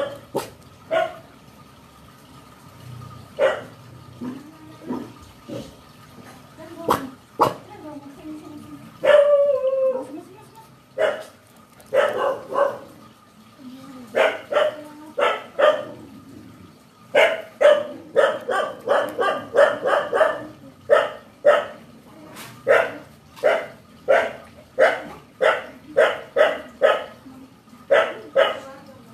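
A dog barks repeatedly nearby.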